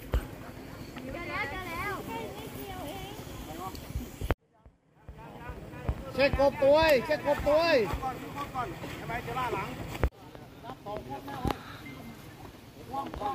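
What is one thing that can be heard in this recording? Men shout and call out to each other across open water.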